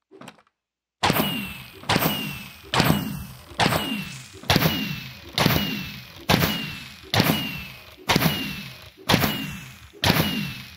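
Fireworks burst with loud booms, one after another in a quick steady rhythm.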